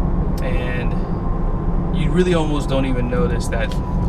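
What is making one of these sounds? Tyres hum on the road as a car drives along.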